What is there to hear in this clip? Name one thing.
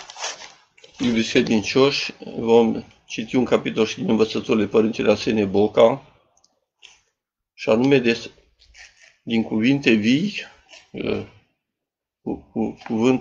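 A middle-aged man speaks calmly and steadily, close to a microphone.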